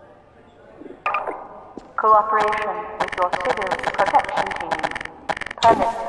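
Game sounds play loudly in an echoing stairwell.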